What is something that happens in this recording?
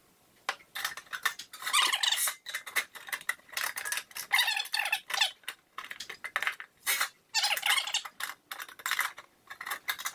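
A hand tool scrapes and clicks against a thin sheet of metal.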